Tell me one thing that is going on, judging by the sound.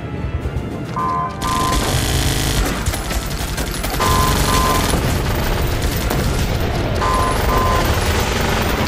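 Short beeping alert tones sound a few times.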